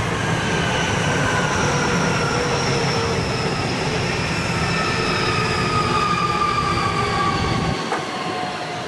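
An electric train rumbles past close by with a whine that slowly drops in pitch.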